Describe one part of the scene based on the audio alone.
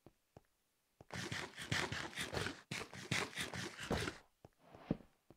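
Someone munches and chews food noisily.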